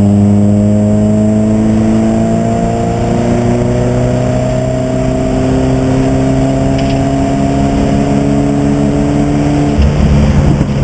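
A race car engine roars loudly from inside the cabin, its pitch climbing slowly as the car speeds up.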